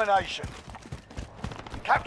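A shotgun is racked with a sharp metallic clack.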